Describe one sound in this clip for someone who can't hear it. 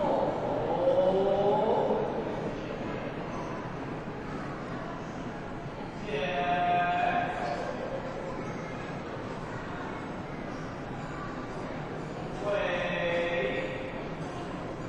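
A group of voices chants in a large echoing hall.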